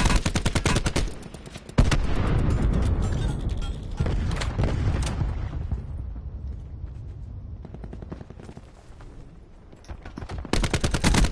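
A rifle fires in rapid bursts of sharp shots.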